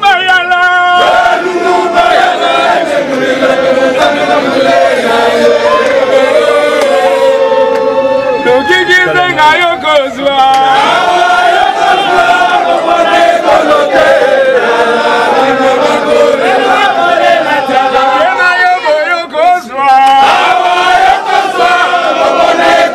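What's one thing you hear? A crowd of men sings loudly together outdoors.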